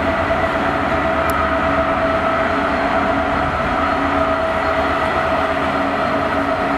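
Train wheels rumble and clatter over rails.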